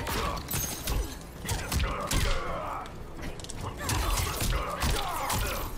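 Heavy punches and kicks thud in quick succession.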